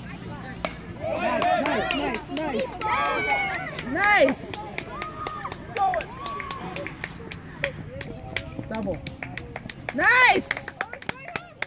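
A crowd of onlookers cheers and shouts loudly.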